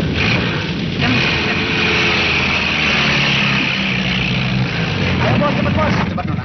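A jeep engine starts and drives off.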